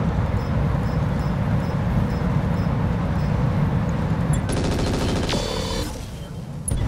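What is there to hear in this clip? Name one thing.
A heavy weapon rumbles deeply as it fires.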